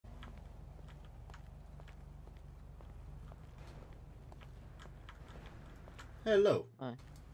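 Footsteps tap lightly on pavement.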